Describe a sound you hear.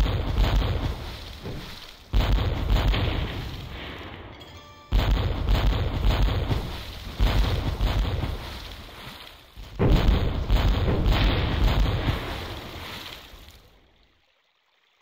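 Cannons boom and explosions burst in loud, rumbling blasts.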